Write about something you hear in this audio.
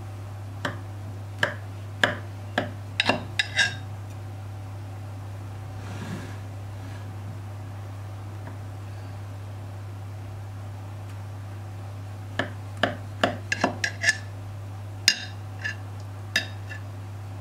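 A knife crunches through crisp layered pastry in short, sharp cuts.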